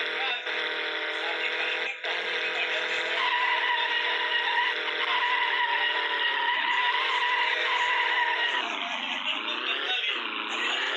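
A sports car engine drones at high revs, then drops in pitch as the car slows down.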